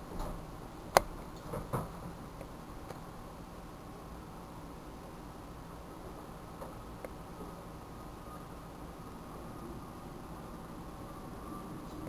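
A boy gulps a drink from a plastic bottle.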